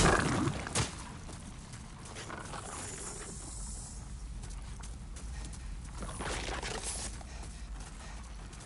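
Armored footsteps clank and scrape on rocky ground.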